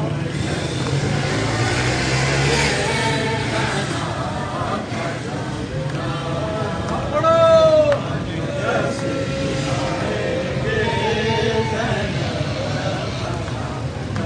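A large crowd of men murmurs all around, close by.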